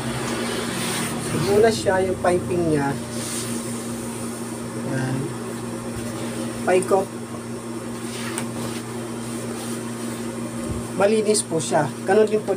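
Fabric rustles and swishes as it is handled up close.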